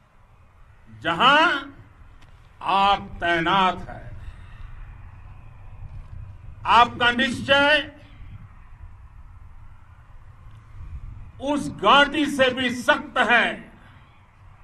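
An elderly man speaks forcefully into a microphone in short bursts with pauses.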